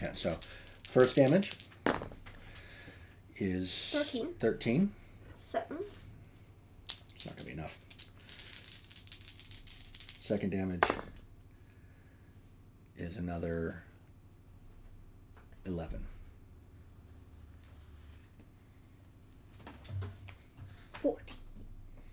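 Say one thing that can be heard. Dice clatter and roll in a tray.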